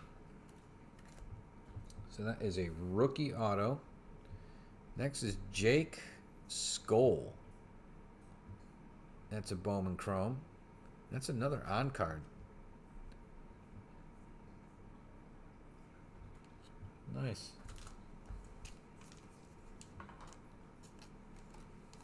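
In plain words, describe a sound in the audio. A plastic card sleeve rustles and slides in hands close by.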